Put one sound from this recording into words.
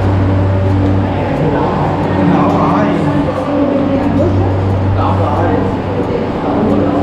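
A man talks nearby.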